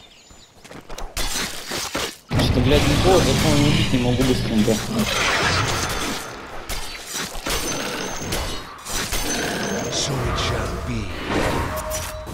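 Weapons clash and magic effects whoosh during a fight.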